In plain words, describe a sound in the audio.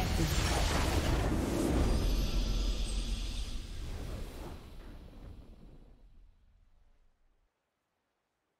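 A triumphant game fanfare swells and then fades to silence.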